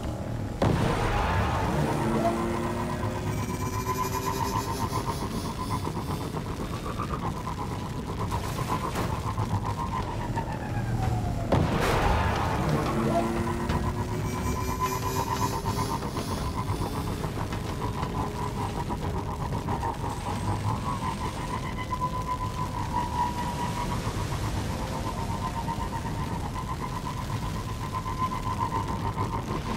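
A hovering vehicle's engine hums steadily.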